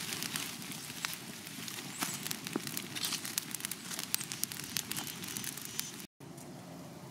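Leaves rustle and crackle as a hand piles them up.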